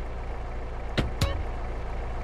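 A car door thuds shut.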